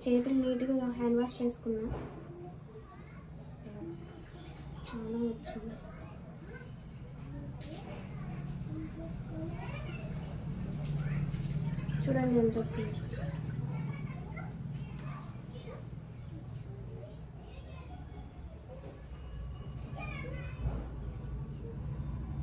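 A hand kneads dough in a metal pot with soft squelches and clinks.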